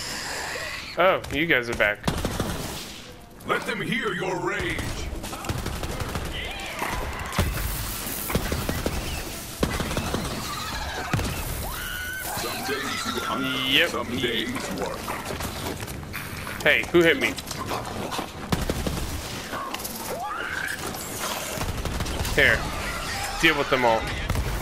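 Creatures screech and growl.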